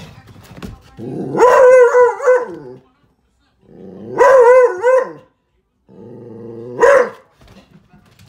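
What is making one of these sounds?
A large dog howls loudly in long, wavering cries.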